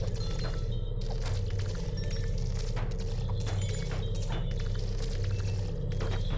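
Plastic balls clatter and bump against each other.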